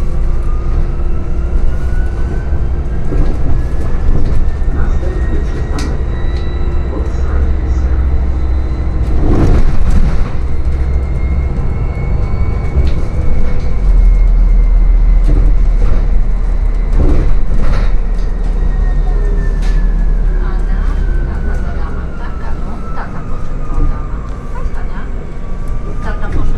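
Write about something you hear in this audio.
A hybrid city bus drives along a street, heard from inside.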